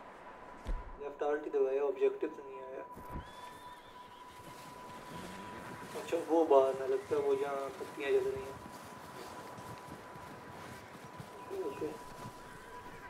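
A young man talks calmly into a headset microphone.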